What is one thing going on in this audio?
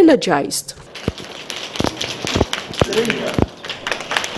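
A group of people clap their hands.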